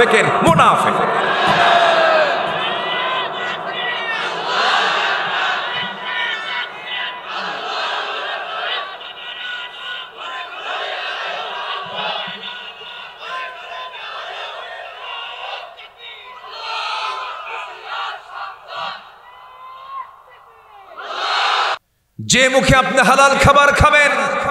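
A man preaches with passion into a microphone, heard through loudspeakers with echo.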